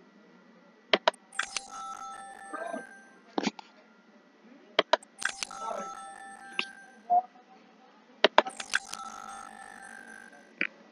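A sparkling game chime rings as an item is found.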